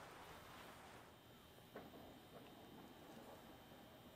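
A gas torch hisses softly.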